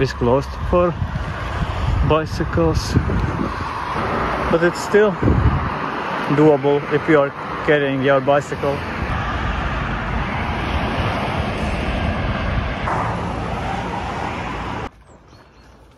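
Wind blows outdoors, rumbling steadily.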